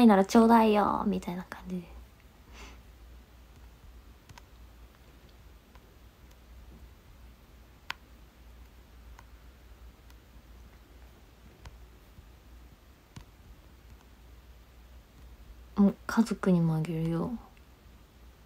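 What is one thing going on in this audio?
A young woman speaks briefly and softly, close to the microphone, between long pauses.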